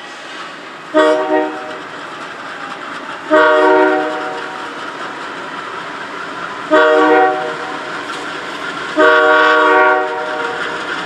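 A locomotive horn sounds several loud, long blasts.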